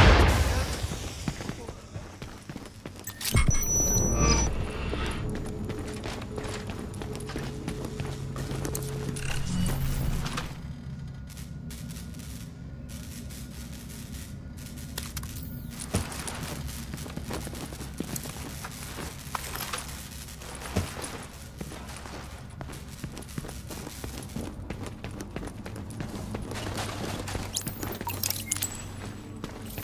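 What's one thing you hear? Footsteps run across a hard floor.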